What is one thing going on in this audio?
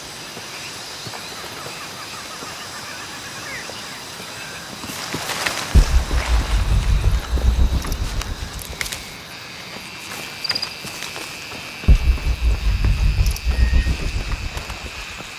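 Footsteps rustle through leaves and undergrowth.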